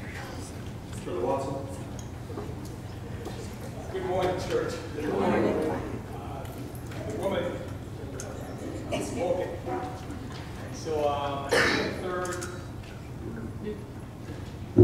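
A man speaks into a microphone through loudspeakers in an echoing hall, calmly and with pauses.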